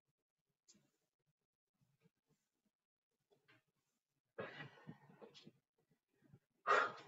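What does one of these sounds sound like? A woman breathes heavily while exercising.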